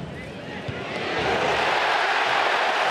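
A stadium crowd erupts into a loud roar.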